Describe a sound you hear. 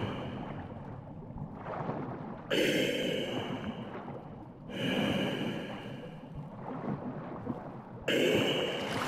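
An underwater craft's engine hums and surges in bursts.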